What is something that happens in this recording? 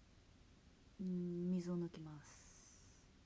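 A young woman hums briefly, close by.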